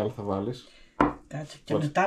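A small shaker is set down on a table with a knock.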